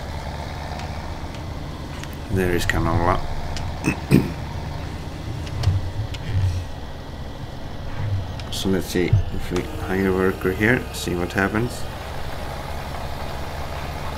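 A tractor engine drones.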